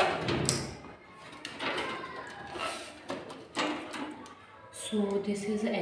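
Metal and plastic parts click and rattle inside a computer case.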